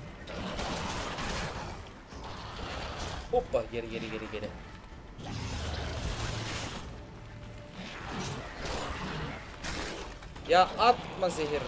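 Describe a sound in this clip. Sword blows strike against creatures.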